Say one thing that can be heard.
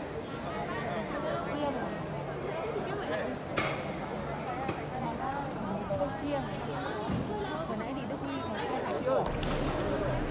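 A crowd of young men chatters in a hall with some echo.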